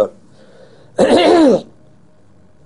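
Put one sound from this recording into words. An elderly man blows his nose into a tissue.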